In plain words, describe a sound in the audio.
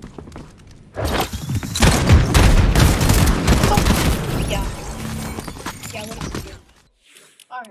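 Loud video game gunfire and blasts crackle in quick bursts.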